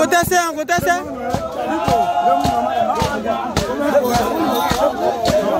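Hand drums beat a fast, steady rhythm nearby.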